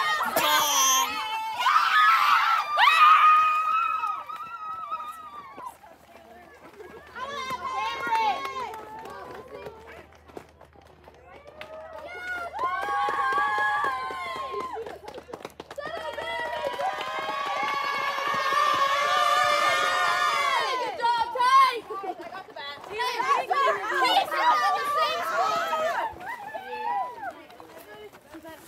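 A crowd of young women cheers and shouts with excitement outdoors.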